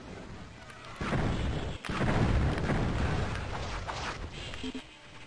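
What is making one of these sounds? A crossbow fires bolts with sharp whooshing bursts.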